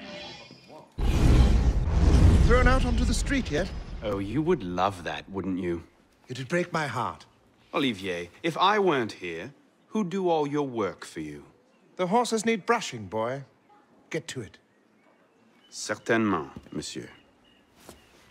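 An older man speaks in a deep, measured voice.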